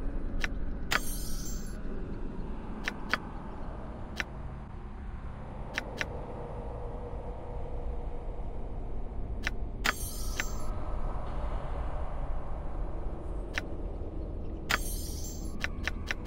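A short chiming flourish plays.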